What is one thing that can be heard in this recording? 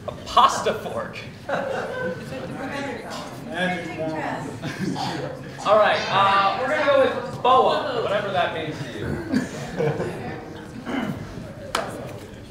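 A young person speaks to an audience in a large hall, heard from a distance.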